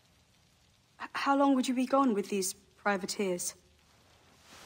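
A young woman speaks softly and teasingly, close by.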